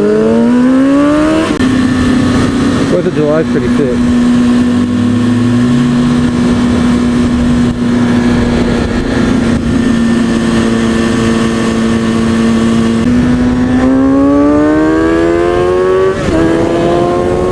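A motorcycle engine revs up and down, rising and dropping with gear changes.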